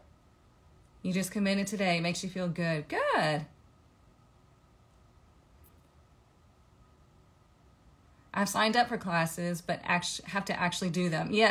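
A young woman talks close to a microphone, calmly and with expression.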